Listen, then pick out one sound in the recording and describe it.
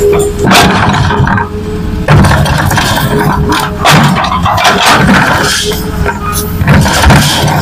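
An excavator bucket scrapes through soil.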